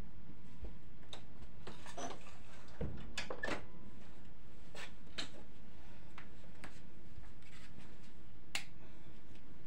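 Bare feet pad softly across a floor.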